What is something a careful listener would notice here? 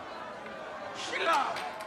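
An elderly man shouts angrily.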